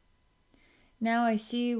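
A woman sings a long, wavering note.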